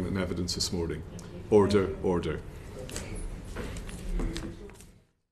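A middle-aged man speaks calmly into a microphone in a large room.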